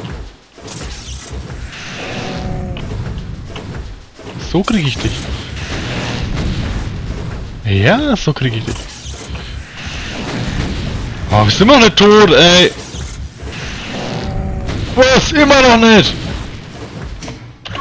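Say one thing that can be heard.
Rockets explode with heavy, rumbling booms.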